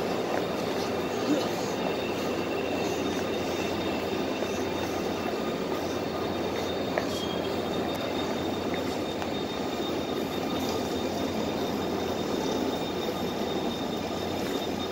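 A high steady whine hums from the train's motors.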